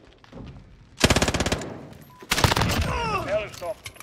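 A rifle fires rapid bursts of shots that echo in a large hall.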